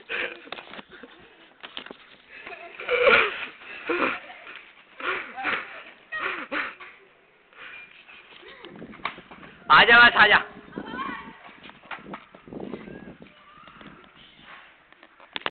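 Young men shout and talk with animation close by, outdoors.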